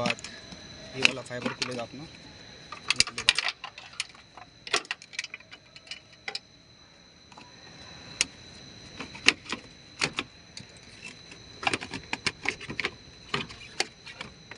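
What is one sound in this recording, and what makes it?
Plastic parts click and knock as hands handle them.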